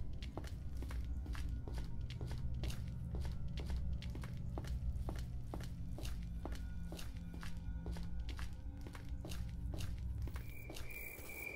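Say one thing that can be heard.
Footsteps thud steadily on a wooden floor.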